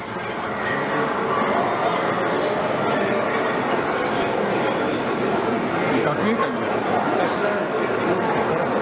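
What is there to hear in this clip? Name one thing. A man speaks formally over a loudspeaker in a large echoing hall.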